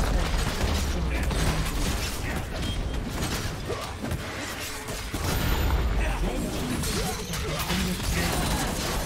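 Game spell effects crackle and boom during a fight.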